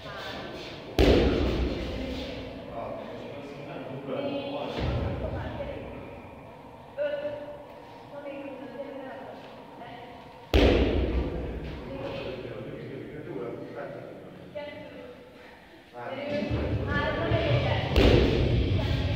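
Feet land with a heavy thud on a rubber floor.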